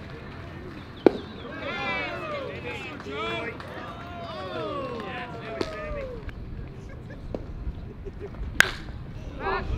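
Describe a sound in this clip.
A baseball bat cracks against a ball.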